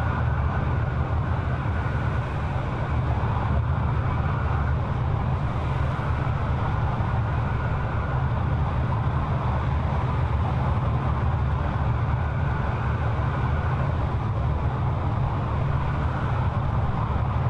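A jet airliner's engines roar steadily.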